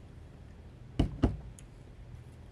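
A glass bowl thumps down onto a table.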